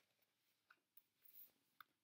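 Pages of a book flap as they are flipped.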